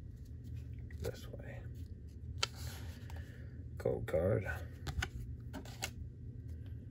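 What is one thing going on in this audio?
Trading cards rustle and slide against each other as they are shuffled.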